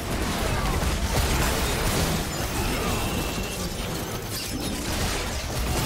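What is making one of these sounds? Game sword hits and impacts clash repeatedly.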